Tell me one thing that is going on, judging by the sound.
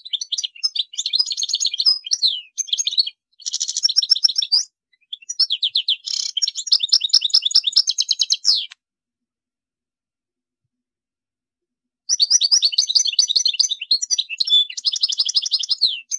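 A small songbird sings a fast, twittering song close by, in bursts with pauses.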